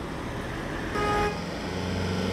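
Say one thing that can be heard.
A van gives a short honk.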